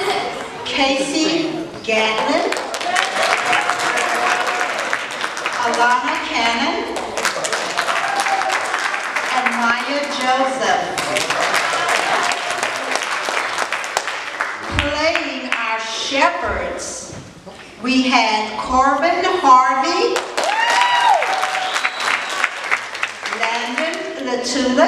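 Children sing together.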